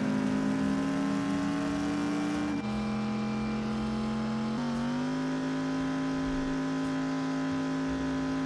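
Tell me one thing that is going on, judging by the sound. Tyres rumble over a dirt road.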